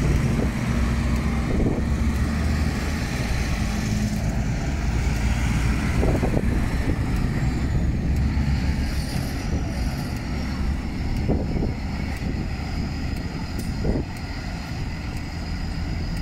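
Tractor engines rumble loudly as a line of tractors drives slowly past.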